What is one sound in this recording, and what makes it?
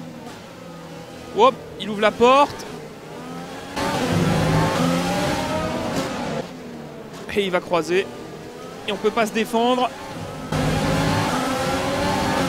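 A racing car engine screams, rising in pitch and dropping with each gear change.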